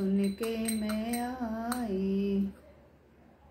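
An elderly woman sings a short phrase close by.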